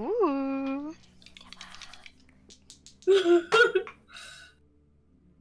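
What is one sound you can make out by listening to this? A woman laughs loudly over an online call.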